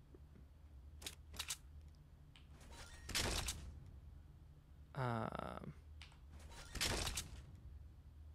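Items are picked up with short clicks.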